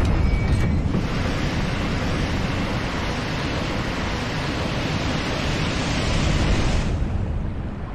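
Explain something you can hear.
Water gushes and roars loudly.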